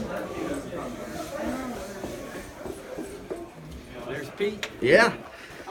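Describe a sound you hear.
Several men talk and chatter nearby.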